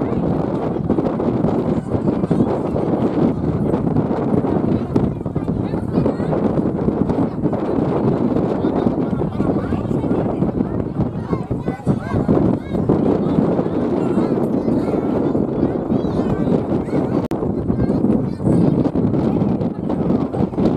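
Children shout and call out nearby.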